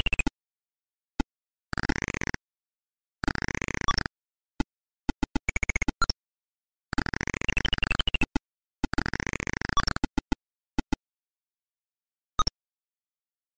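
Beeping retro game sound effects chirp and buzz in quick bursts.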